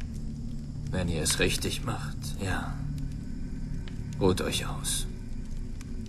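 An elderly man speaks in a low, calm voice, close by.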